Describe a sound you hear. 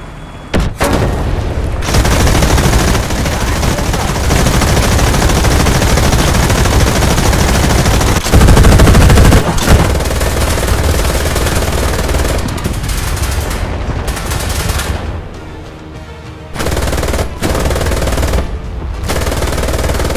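A tank engine rumbles deeply.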